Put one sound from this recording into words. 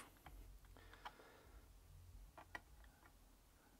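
Fingers tap and click on a small plastic model.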